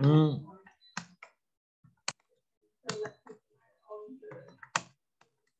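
Keys click on a keyboard as someone types.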